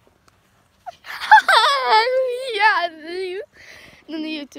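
A young girl shouts loudly with excitement.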